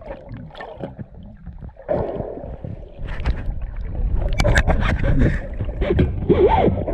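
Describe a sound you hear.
Water rumbles and gurgles close around an underwater microphone.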